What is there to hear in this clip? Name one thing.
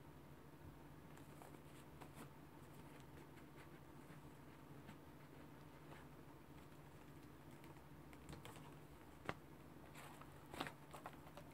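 Cardboard boxes rustle and tap as hands handle them.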